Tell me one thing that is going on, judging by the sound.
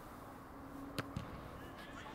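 A rugby ball is struck with a sharp thud from a kick.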